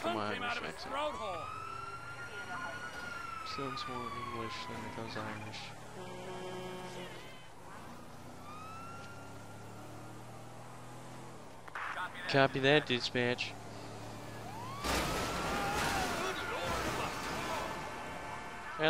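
A police siren wails nearby, rising and falling.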